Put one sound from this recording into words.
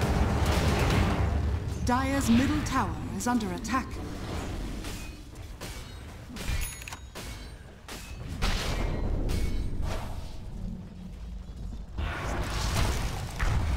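Fighting sound effects clash, crackle and whoosh in quick bursts.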